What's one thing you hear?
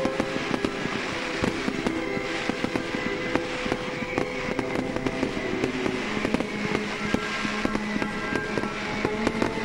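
Fireworks whistle as they shoot up.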